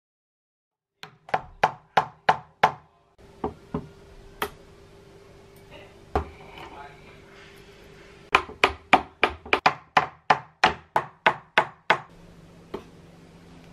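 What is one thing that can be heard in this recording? A hammer taps sharply on metal, in quick bursts.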